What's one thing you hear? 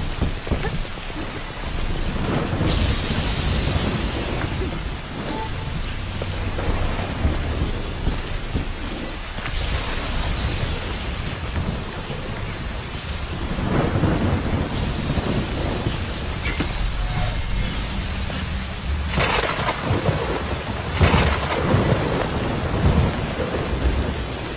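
Footsteps thump on wooden planks.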